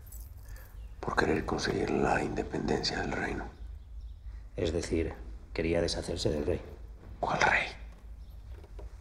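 An elderly man answers in a low, strained voice nearby.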